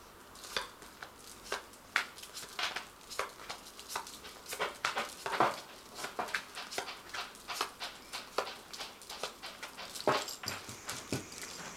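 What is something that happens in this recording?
Cards are laid down one by one on a cloth-covered table with soft taps.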